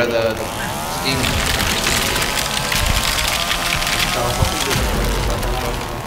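A chainsaw revs loudly and cuts through wood.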